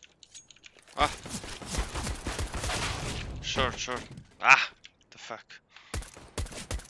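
Gunshots ring out sharply several times.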